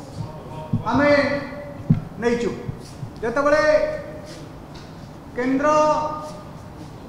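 A man speaks calmly and firmly into a microphone, in bursts with pauses.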